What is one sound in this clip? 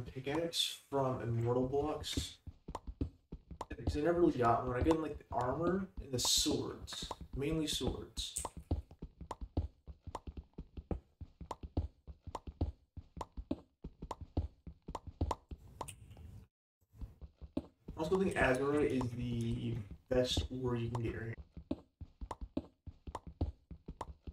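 Rapid clicks tap steadily.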